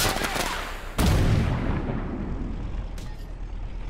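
A shell explodes with a loud boom nearby.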